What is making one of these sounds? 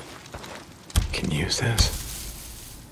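Leafy branches rustle and snap as a sapling is cut.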